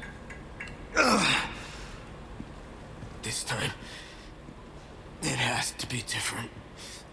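A young man talks close to a microphone in short bursts.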